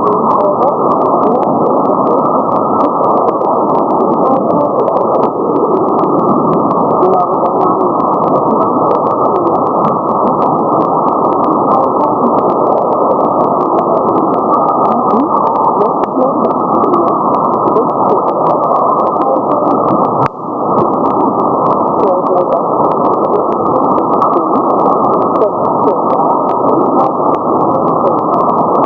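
Radio static hisses steadily through a receiver.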